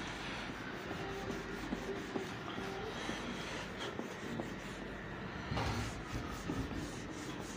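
A cloth duster rubs across a whiteboard.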